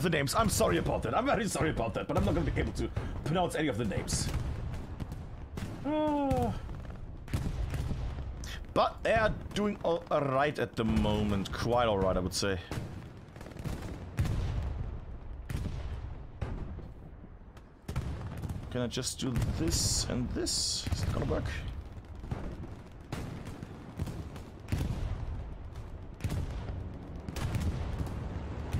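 Explosions rumble in the distance.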